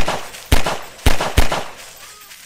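A pistol fires single shots.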